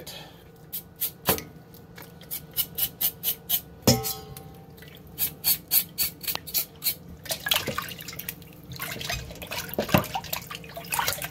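Water splashes and sloshes as meat is rubbed in a bowl.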